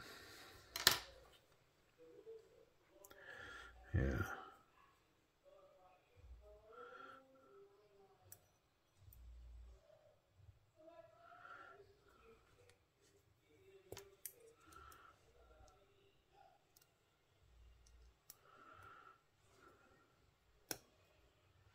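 Small metal parts click and tap together in handling.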